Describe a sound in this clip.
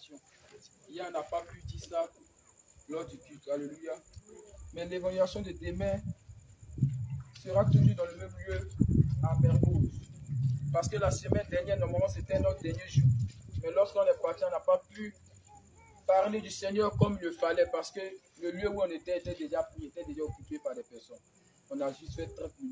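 A young man speaks aloud with animation outdoors at night.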